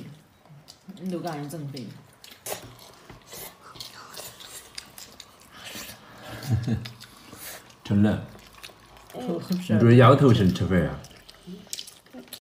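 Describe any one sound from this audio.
Young boys chew and smack their lips while eating.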